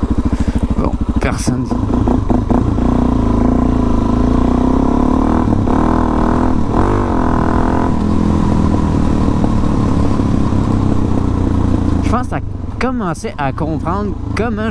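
A motorcycle engine hums and revs up and down nearby.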